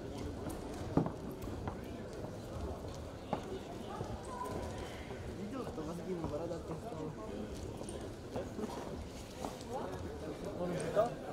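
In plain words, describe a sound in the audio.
Wrestlers' feet thump and scuff on a mat.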